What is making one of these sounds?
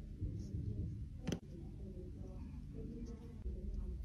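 Tweezers tap and click on a hard surface.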